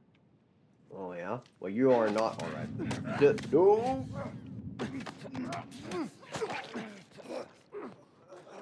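A man grunts and strains in a struggle.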